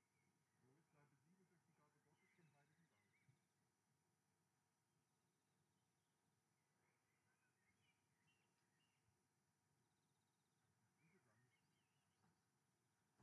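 A man speaks calmly through a loudspeaker outdoors, heard from a distance.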